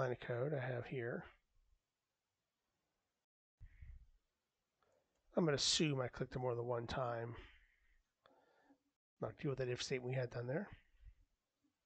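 A man speaks calmly and closely into a microphone, in bursts with pauses.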